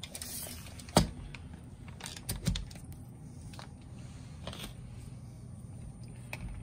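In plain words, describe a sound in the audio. A metal tape measure clicks and rattles against wood.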